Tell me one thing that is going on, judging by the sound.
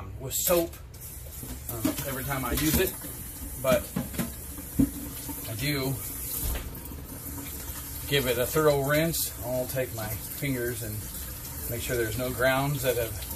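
Water runs from a tap into a sink.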